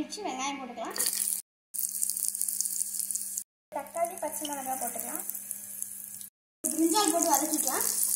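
Oil sizzles and crackles in a small pan.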